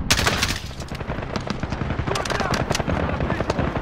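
A rifle is reloaded with metallic clicks and clacks.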